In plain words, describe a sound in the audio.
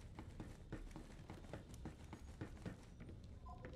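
Footsteps clank quickly on a metal floor.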